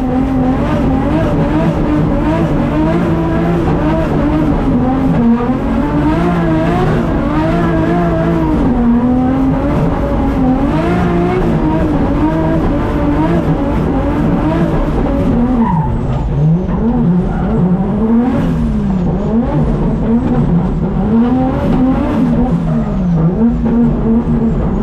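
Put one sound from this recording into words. A race car engine roars loudly from inside the cabin, revving up and down.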